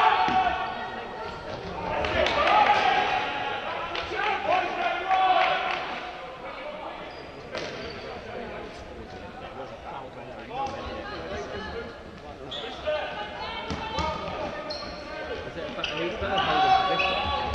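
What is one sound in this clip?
Sports shoes squeak sharply on a wooden floor.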